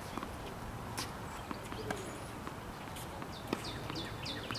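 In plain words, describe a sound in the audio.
A tennis ball is struck with a racket, with sharp pops outdoors.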